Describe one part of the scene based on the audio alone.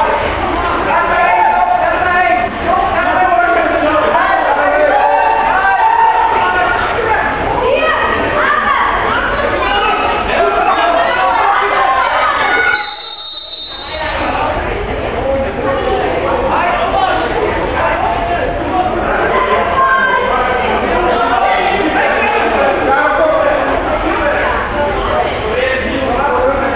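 Water polo players splash and thrash in a pool.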